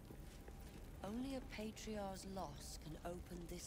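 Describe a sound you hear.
A young woman talks casually into a microphone.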